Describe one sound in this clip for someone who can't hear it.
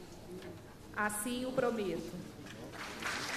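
A young woman speaks firmly into a microphone in a large echoing hall.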